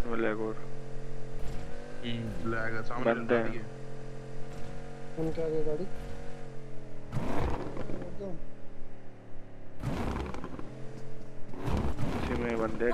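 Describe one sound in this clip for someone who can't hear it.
A car engine hums steadily as the car drives over rough ground.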